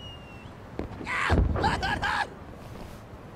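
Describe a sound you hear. An explosion bursts loudly with crackling sparks.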